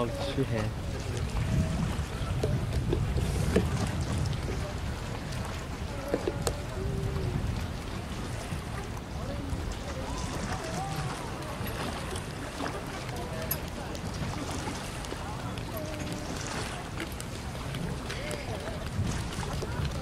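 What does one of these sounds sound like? Water laps gently against a floating platform.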